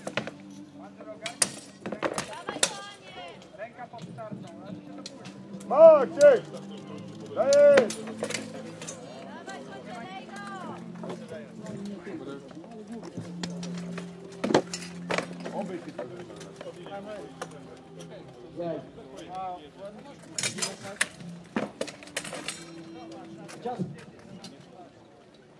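Swords clang against metal armour and shields.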